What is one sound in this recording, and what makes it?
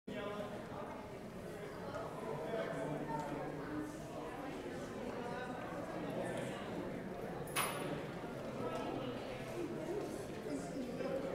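Men and women chatter quietly in a large echoing hall.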